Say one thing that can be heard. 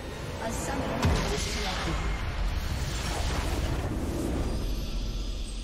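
A deep explosion booms and rumbles.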